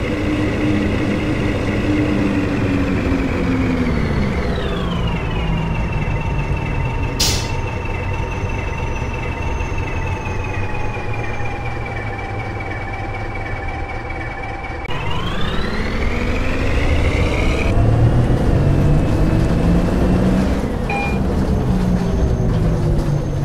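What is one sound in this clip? A bus engine drones steadily, winding down in pitch and later revving up again.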